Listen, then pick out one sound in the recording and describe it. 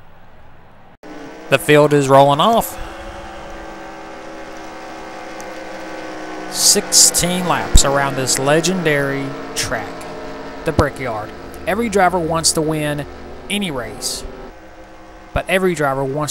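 Racing car engines drone and whine, rising and falling in pitch as the cars speed by.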